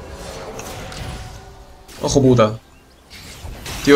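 Fantasy battle sound effects clash and crackle as characters fight.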